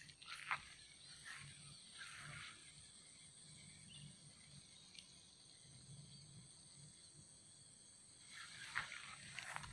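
Tall grass rustles close by.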